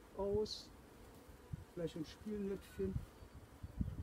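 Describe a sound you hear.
A wooden frame scrapes as it is lifted out of a hive.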